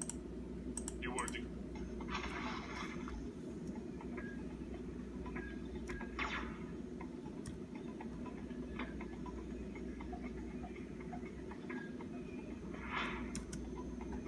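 Short electronic game sound effects play from small laptop speakers.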